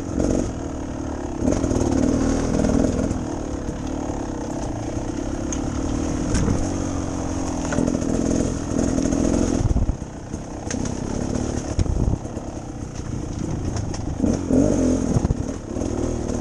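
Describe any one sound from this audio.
Tyres bump and crunch over a rough dirt trail.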